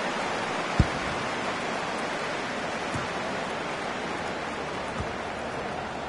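A football is kicked with a dull thud, several times.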